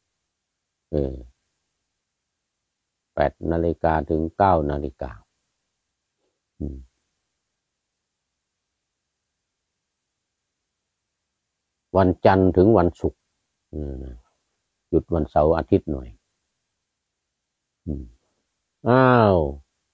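An elderly man speaks calmly and slowly, close to the microphone, with long pauses.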